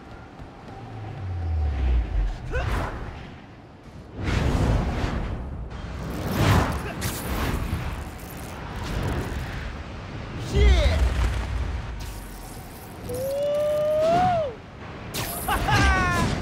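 Air rushes past in loud whooshes.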